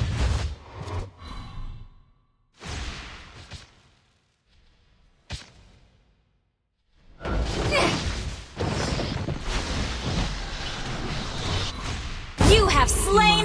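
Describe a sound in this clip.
Game spell effects whoosh and crackle in bursts.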